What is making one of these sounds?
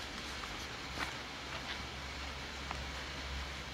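Paper rustles softly under a hand.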